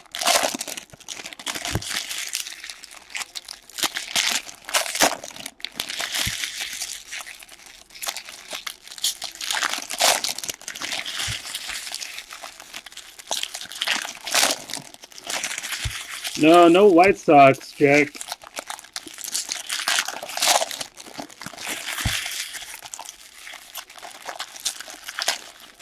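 Foil card wrappers crinkle and rustle close by.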